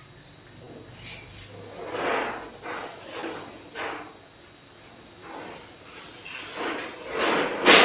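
An elderly man speaks slowly and calmly nearby.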